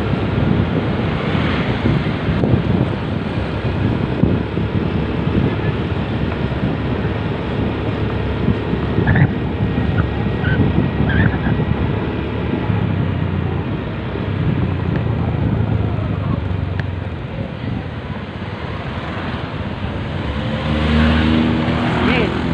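A motorcycle engine hums while riding.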